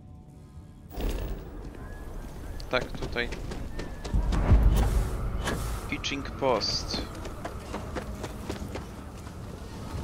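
Footsteps thud on hard ground at a steady walking pace.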